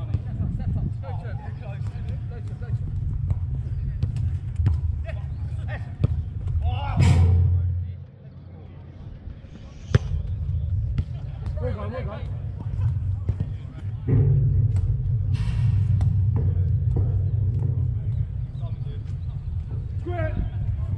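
A football thuds off a boot.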